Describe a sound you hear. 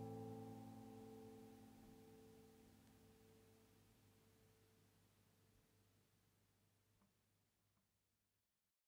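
An acoustic guitar chord rings out and slowly fades away.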